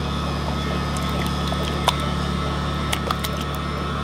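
Liquid pours and splashes into a bowl.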